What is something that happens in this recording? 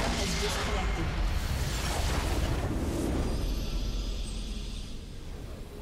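A musical sting swells and then fades.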